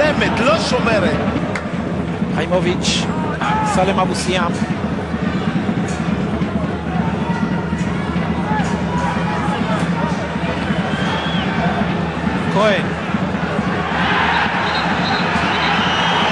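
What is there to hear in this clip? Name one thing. Fans blow whistles and horns in the crowd.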